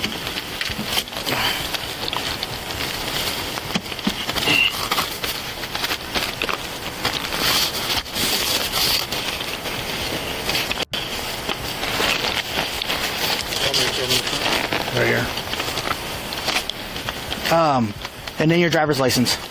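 A man speaks calmly nearby, heard close up.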